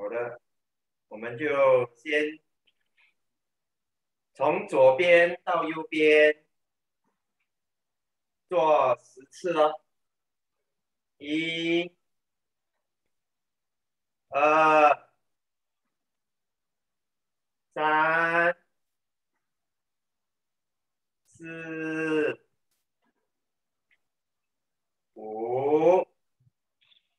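A young man speaks loudly in short bursts, close by, with pauses between.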